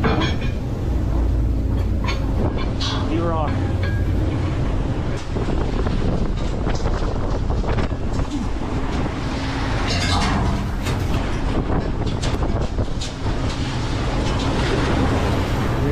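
Rough sea water churns and rushes past close by.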